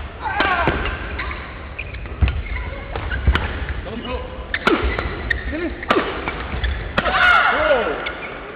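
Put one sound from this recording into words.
Badminton rackets strike a shuttlecock with sharp pops in a quick rally.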